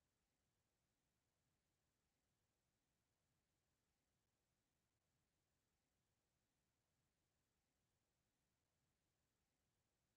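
A clock ticks quietly and steadily.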